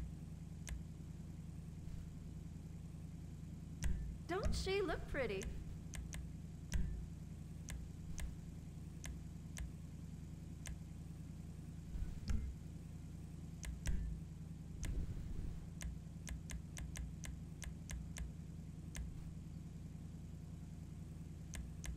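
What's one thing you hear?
Short soft clicks tick now and then as menu choices change.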